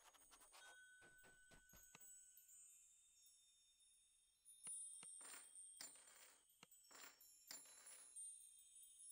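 Short chimes and clicks sound from a game.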